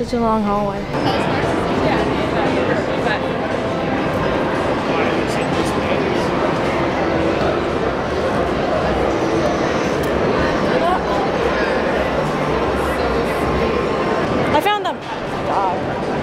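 A crowd murmurs in a large, busy hall.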